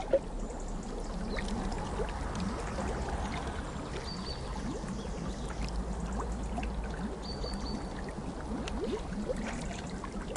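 Water splashes and churns in a pool.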